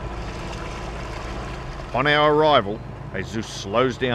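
Small waves lap and splash at the water's surface.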